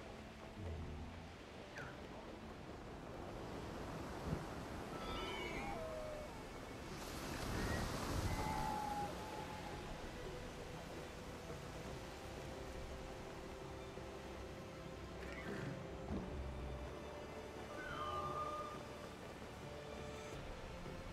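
Wind rushes past steadily during flight.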